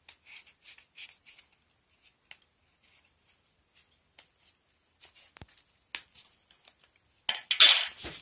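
Scissors snip through soft material.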